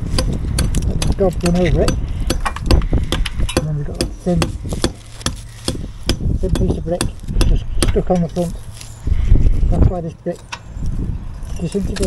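Crumbling mortar and brick scrape and crack as a gloved hand pulls them loose.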